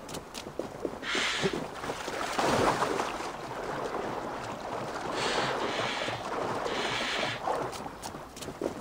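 Water splashes as a person wades through a shallow pond.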